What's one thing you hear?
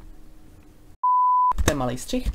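A steady high-pitched test tone beeps.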